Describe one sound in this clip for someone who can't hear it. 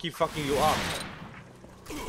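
A gun fires a loud, rapid burst.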